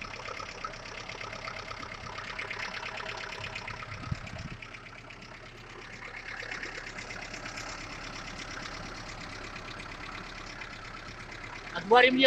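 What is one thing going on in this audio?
An engine idles close by with a steady, rapid ticking.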